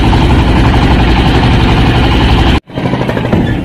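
A boat motor drones loudly.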